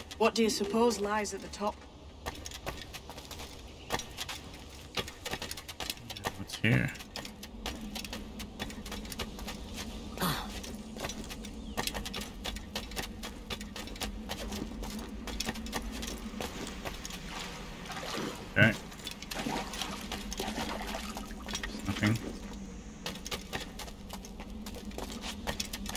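Footsteps crunch quickly over rock and gravel.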